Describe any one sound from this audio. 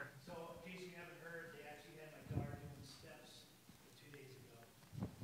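A man speaks calmly into a microphone in a large, echoing room.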